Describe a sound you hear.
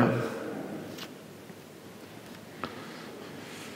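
Pages of a book rustle as a man turns them.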